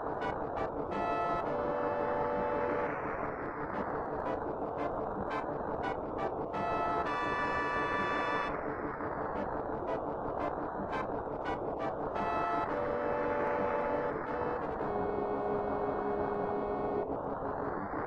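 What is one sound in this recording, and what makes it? Short electronic game beeps and jingles sound now and then.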